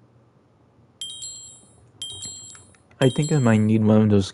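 Short, high chimes tick once a second as a game counts down.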